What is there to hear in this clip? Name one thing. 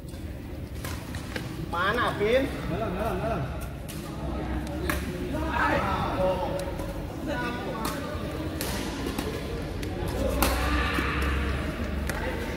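A badminton racket smacks a shuttlecock.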